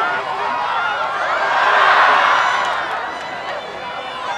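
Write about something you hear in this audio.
A crowd of spectators cheers loudly outdoors.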